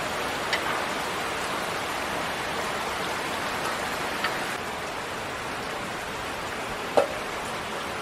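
A metal spoon scrapes and clinks against a cooking pan.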